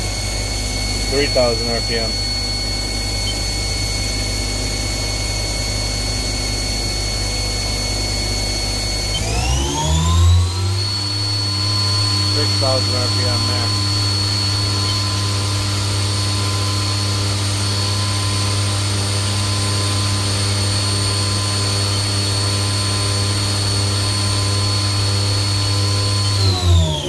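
A lathe spindle hums steadily and rises in pitch as it speeds up.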